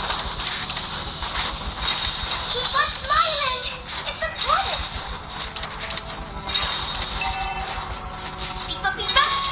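Video game battle effects clash and whoosh.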